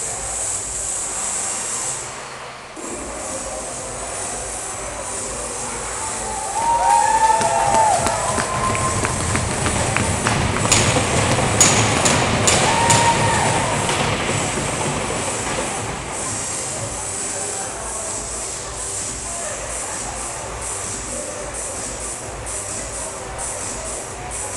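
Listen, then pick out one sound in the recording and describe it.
Ice skate blades scrape and hiss across the ice.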